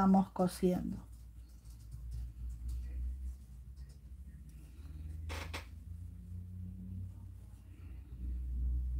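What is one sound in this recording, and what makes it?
Knitting needles tap and click softly.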